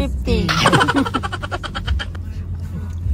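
A teenage boy laughs loudly up close.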